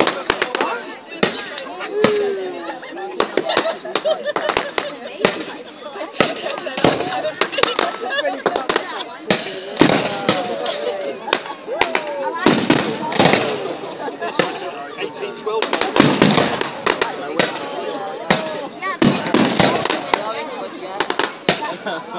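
Fireworks crackle and fizzle.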